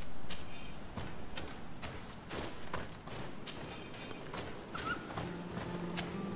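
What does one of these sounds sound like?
Footsteps crunch on dirt and dry grass.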